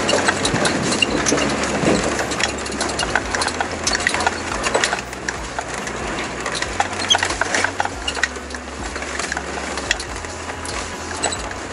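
River water rushes and splashes against a vehicle.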